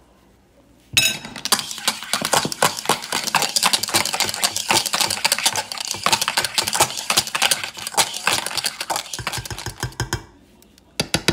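A wire whisk beats eggs quickly in a bowl, clinking against its sides.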